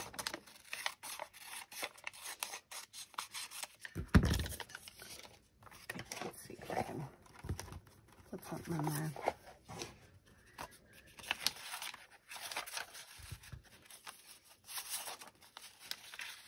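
Paper rustles and crinkles as hands handle it.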